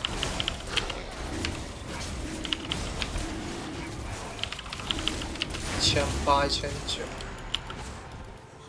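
Video game spell effects zap and clash in quick bursts.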